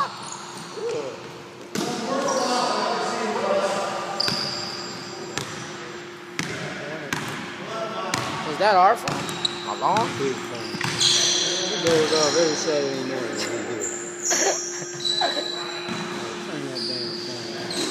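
Young men shout and call out across an echoing hall.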